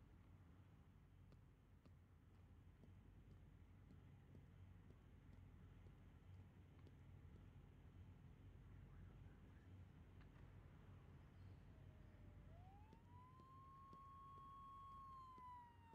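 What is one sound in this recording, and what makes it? Car engines idle with a low, steady rumble.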